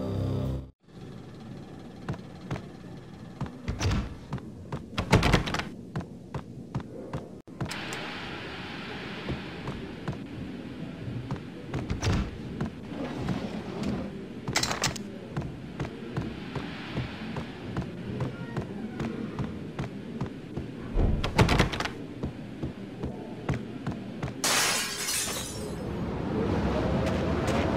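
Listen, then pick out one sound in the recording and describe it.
Footsteps thud quickly on a hard floor.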